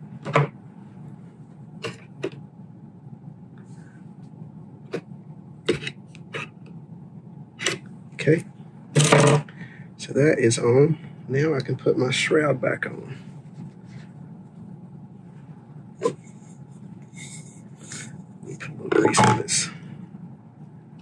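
Metal parts click and tap as they are handled.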